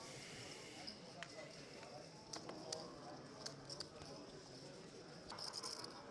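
Poker chips click together softly.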